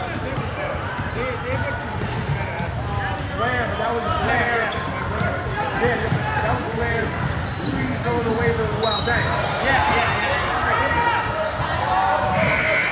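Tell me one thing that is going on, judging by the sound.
Young girls shout and call out to each other across the court.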